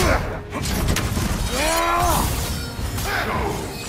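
An axe swings and strikes with heavy thuds.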